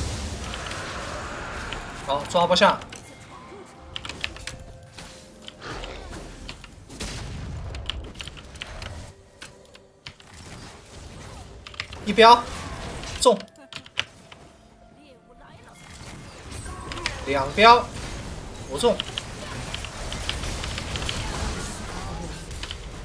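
Game battle effects clash and burst.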